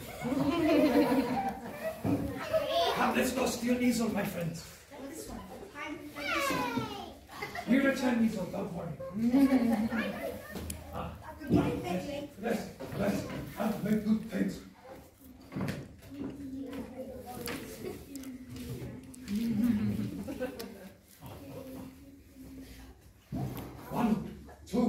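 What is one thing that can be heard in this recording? Children talk and shout excitedly nearby.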